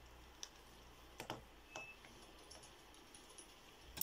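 Calculator keys click softly.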